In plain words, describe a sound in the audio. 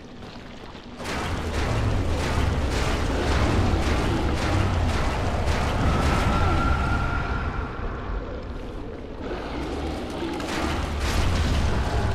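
A huge beast growls with a deep, loud rumble.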